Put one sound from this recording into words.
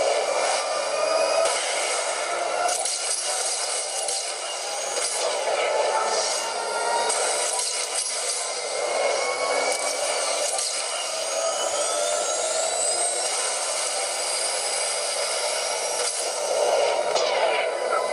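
A racing game's engine roars steadily from a small phone speaker.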